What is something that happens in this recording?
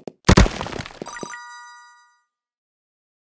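A bright chime rings out and fades.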